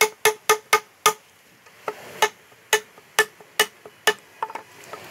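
A hammer strikes a chisel into a timber beam.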